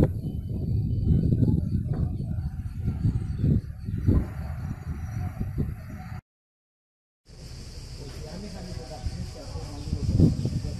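Wind buffets outdoors with a low rumble.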